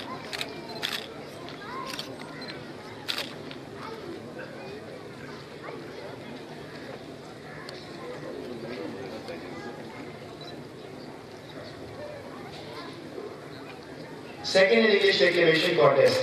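A large crowd murmurs outdoors in the distance.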